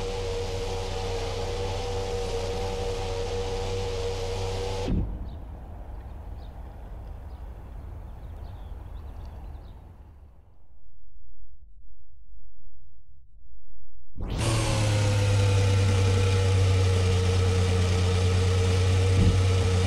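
A racing car engine drones steadily at a high pitch.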